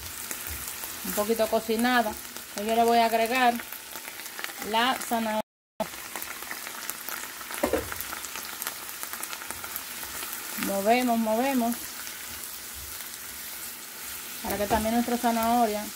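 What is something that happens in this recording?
A spatula scrapes and stirs against a pan.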